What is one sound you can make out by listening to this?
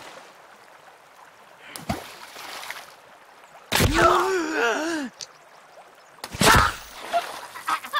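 An axe chops into flesh with heavy wet thuds.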